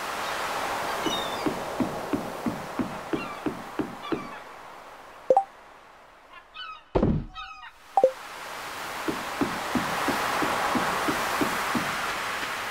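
Footsteps tap quickly on wooden boards.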